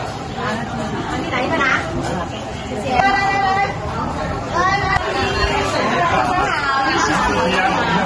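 Several people chatter and laugh in a busy, echoing room.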